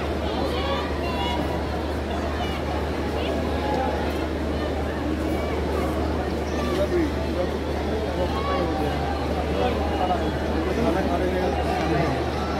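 A large stadium crowd chatters and cheers steadily.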